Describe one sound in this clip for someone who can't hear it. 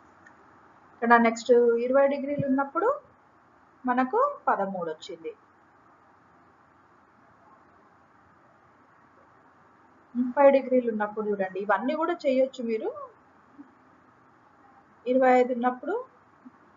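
A woman speaks calmly through a computer microphone, in short bursts with pauses.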